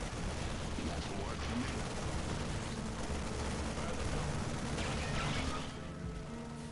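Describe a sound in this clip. Rapid gunfire rattles and bursts in a noisy battle.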